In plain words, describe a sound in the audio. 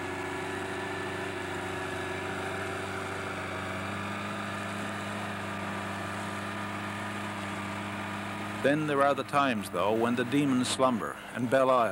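A small boat's motor drones steadily.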